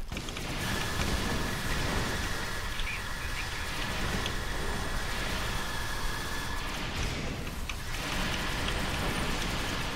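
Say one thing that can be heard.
Energy weapons zap and blast in a game battle.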